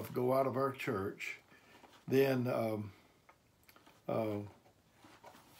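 An older man reads aloud slowly and calmly, close by.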